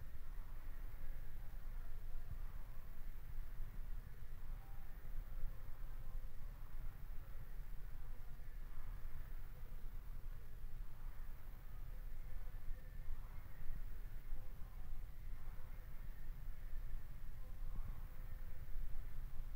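An air rowing machine's fan flywheel whooshes with each stroke.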